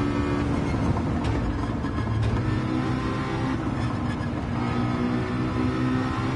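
A racing car engine drops in pitch and burbles as it shifts down under braking.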